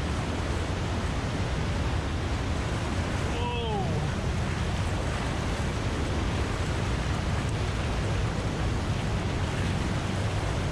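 Rushing water roars loudly through a narrow echoing rock channel.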